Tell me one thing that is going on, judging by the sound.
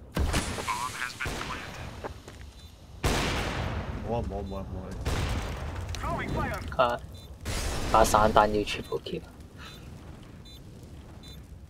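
A smoke grenade bursts and hisses nearby.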